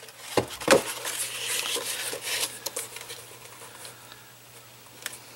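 Hands smooth paper with a soft rubbing.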